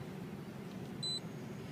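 A car stereo gives a short electronic beep.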